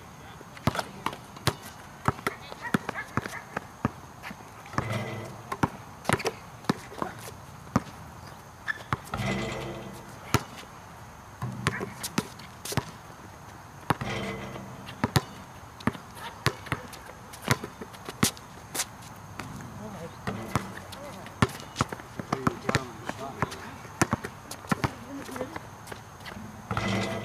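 A basketball bounces repeatedly on hard ground.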